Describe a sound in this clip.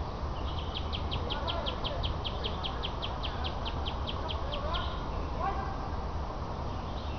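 Young men shout faintly in the distance outdoors.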